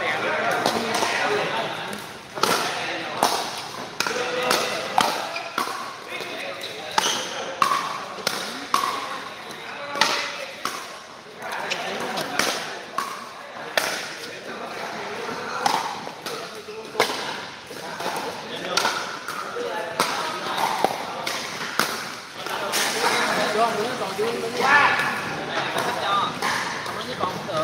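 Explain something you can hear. Paddles smack a plastic ball back and forth with sharp pops in a large echoing hall.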